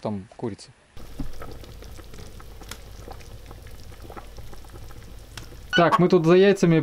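A pot of broth simmers and bubbles softly.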